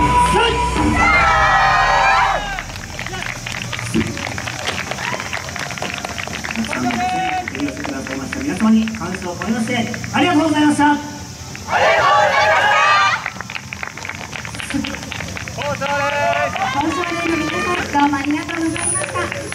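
Young women shout chants together, loud and close.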